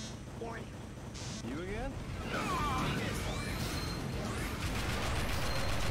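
Gunfire rattles in a video game.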